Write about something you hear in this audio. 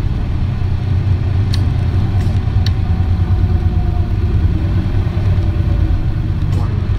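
A bus engine idles with a deep, steady rumble close by.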